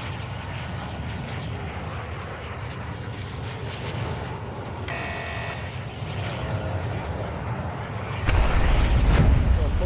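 A large aircraft's engines drone steadily.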